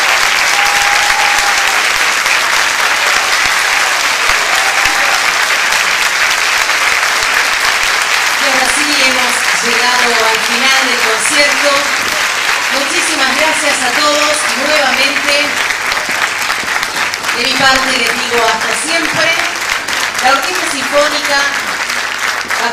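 A large audience applauds loudly in a hall.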